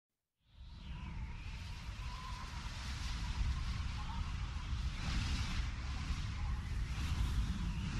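Wind rushes loudly past a flying eagle.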